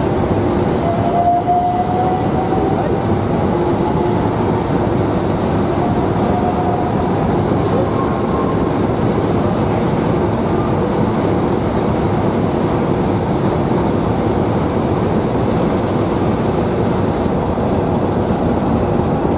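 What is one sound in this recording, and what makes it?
An electric multiple-unit train pulls out past a platform, its wheels rumbling on the rails.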